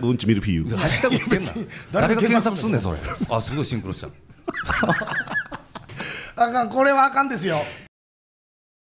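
A man talks quickly with animation through a microphone.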